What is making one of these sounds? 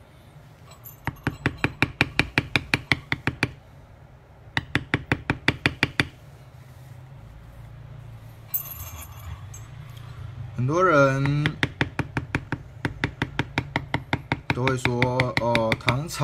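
A mallet taps rapidly and steadily on a metal stamping tool.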